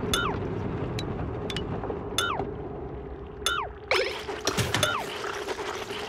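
A game interface plays short falling electronic chirps.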